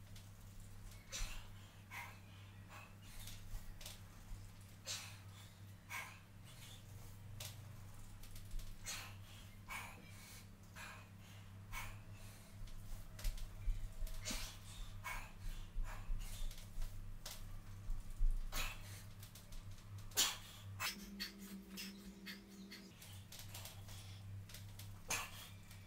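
A man exercising on a mat makes soft thumps and rustles.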